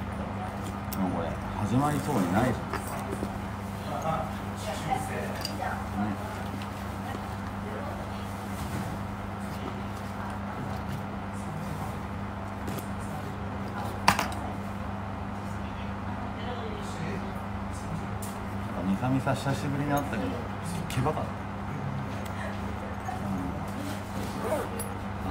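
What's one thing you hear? A young man speaks quietly and calmly, close by.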